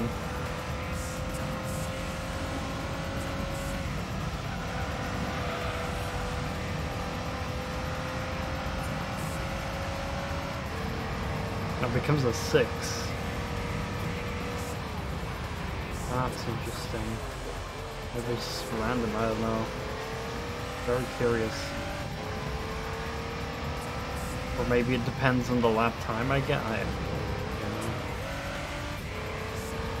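A racing car engine drones steadily, rising in pitch and dropping at each gear change.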